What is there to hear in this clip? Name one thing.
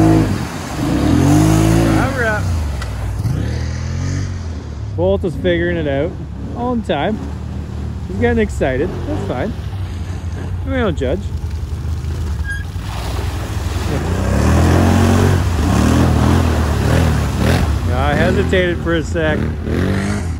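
An all-terrain vehicle engine revs hard, rising and falling in pitch.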